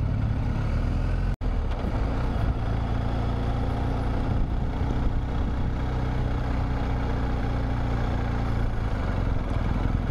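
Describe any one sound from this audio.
A motorcycle engine hums steadily up close.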